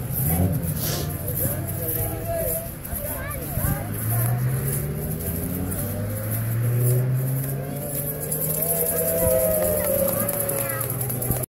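Young children chatter and call out in the background.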